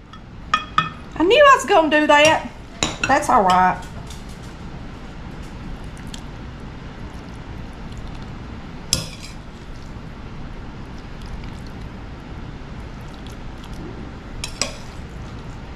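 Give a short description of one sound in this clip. A metal spoon scrapes and taps against a glass dish.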